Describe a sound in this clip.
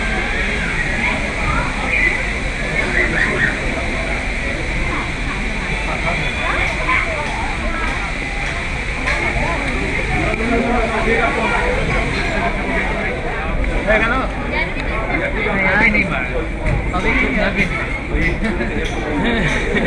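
A crowd of people murmurs and chatters close by.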